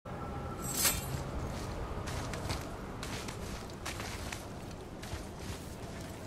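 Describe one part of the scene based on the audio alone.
A climber's hands and boots scrape and scuff against rough rock.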